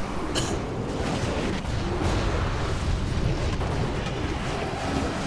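Game combat effects clash and burst in a fight.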